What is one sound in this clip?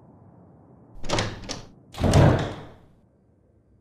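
A heavy wooden door creaks slowly open.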